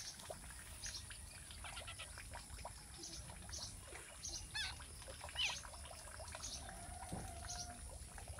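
A young bird chirps in short, high cheeps close by.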